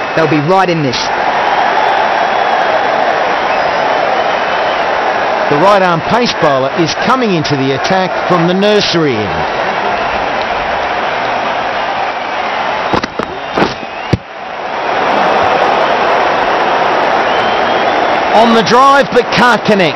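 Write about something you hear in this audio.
A stadium crowd murmurs and cheers.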